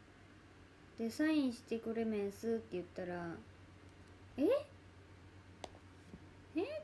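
A young woman speaks softly and casually, close to a microphone.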